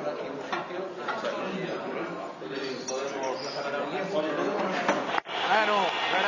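Several men talk over one another at a table.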